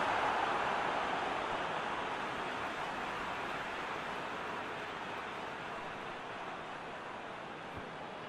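A large stadium crowd roars steadily, slowly fading.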